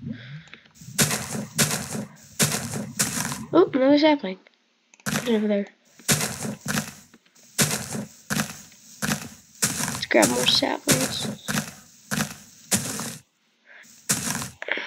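Leafy blocks crunch and rustle as a hand breaks them, over and over in quick bursts.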